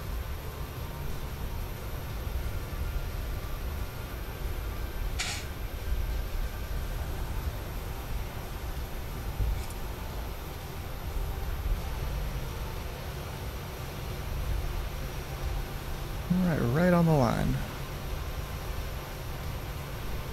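A jet engine hums low and steady.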